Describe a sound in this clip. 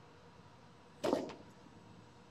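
Weight plates on a barbell clank as it is lifted.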